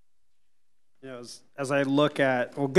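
A man speaks over a lectern microphone.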